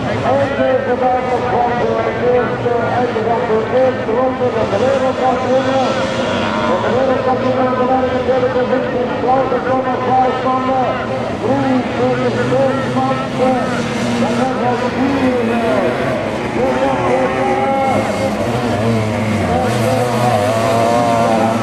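Sidecar motocross outfits race by with engines revving hard.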